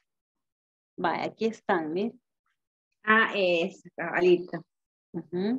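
A woman speaks calmly and clearly through an online call.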